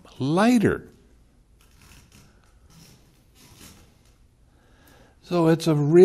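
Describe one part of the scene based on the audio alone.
An elderly man speaks with animation into a close microphone, pausing between phrases.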